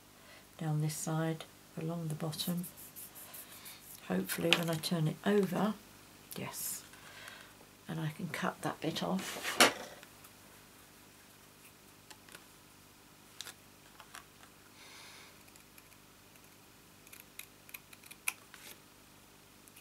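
Card stock rustles and taps as it is handled.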